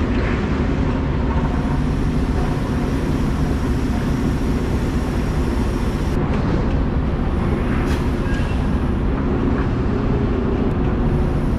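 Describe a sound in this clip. A truck engine rumbles steadily as a flatbed trailer rolls along.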